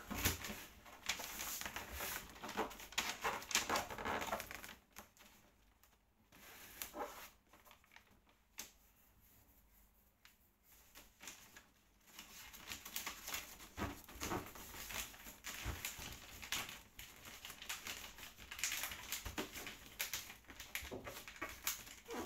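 Fingers scratch and tear at wrapping paper.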